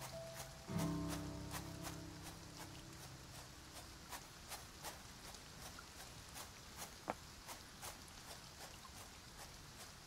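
Quick footsteps rustle through dry grass at a steady run.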